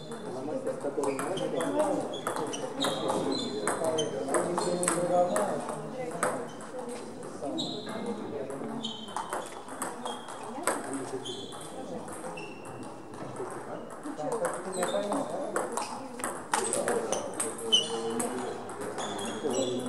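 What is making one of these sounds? Sports shoes squeak on the floor.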